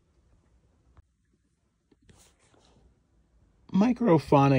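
Small cardboard boxes rustle and tap as a hand sorts through them.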